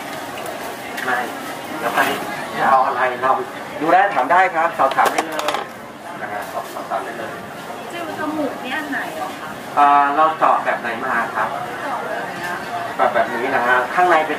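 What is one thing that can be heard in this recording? A young woman speaks nearby in a casual voice.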